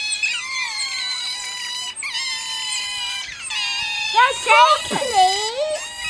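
A group of otters squeak and chirp in high, shrill calls.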